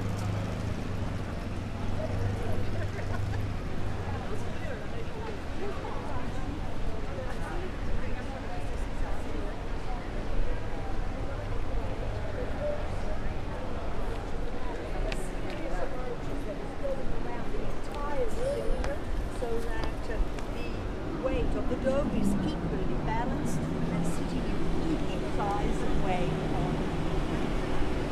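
Footsteps scuff on cobblestones.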